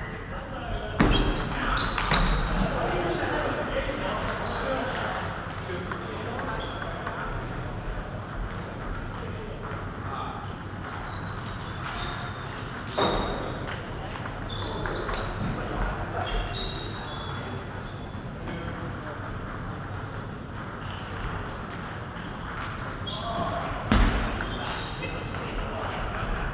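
A ping-pong ball clicks back and forth between paddles and a table in a large echoing hall.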